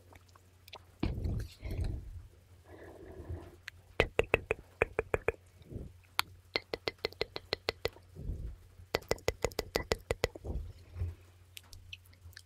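A young woman whispers softly and very close into a microphone.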